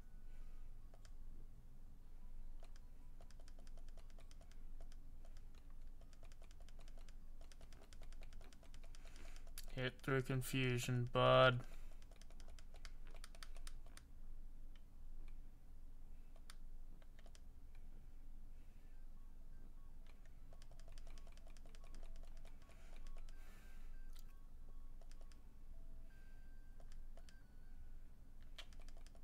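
Electronic video game music plays quietly in the background.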